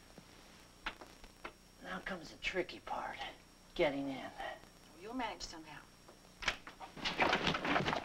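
A man knocks on a door.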